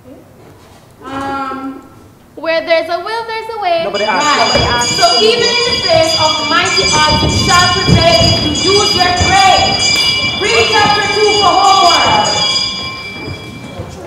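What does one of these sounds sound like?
A group of young women sing together in a large hall.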